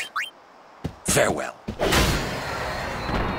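A weapon strikes a creature with a heavy impact.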